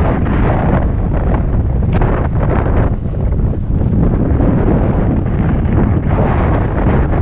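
Wind rushes loudly past a moving rider outdoors.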